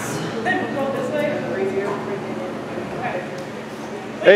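A man talks calmly at a distance in an echoing room.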